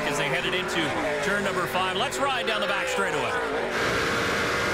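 Race car engines roar past, their pitch dropping as they go by.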